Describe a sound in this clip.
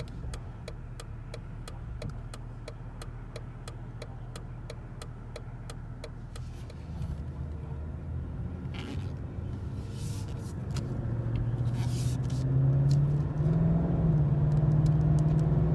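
A car engine hums steadily, then revs higher as the car pulls away.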